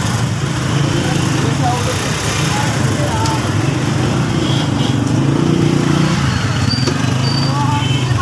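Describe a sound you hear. Motorcycle engines rumble nearby.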